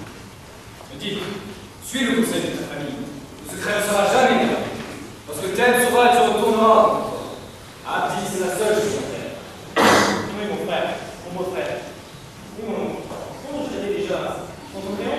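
A young man speaks with animation in an echoing hall.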